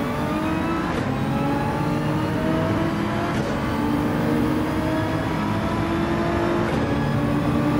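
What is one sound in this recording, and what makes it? A gearbox clicks sharply with each upshift.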